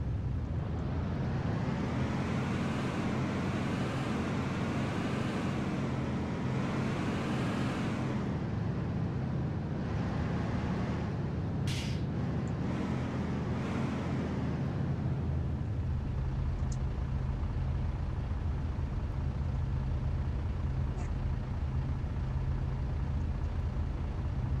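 A truck engine rumbles and revs up and down.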